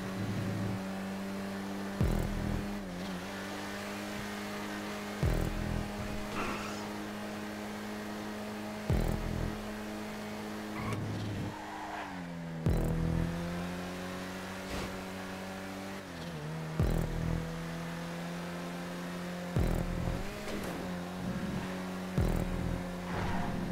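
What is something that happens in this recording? Car tyres hiss on the road.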